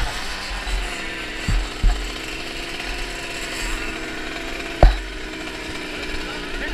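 A motorbike engine idles softly.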